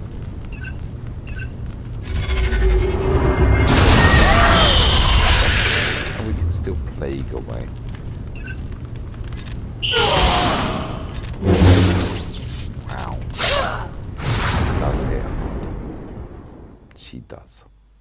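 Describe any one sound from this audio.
Blades swing and clash with loud whooshes and crackling energy blasts.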